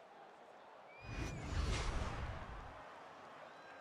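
A sharp whooshing sound effect sweeps past and fades.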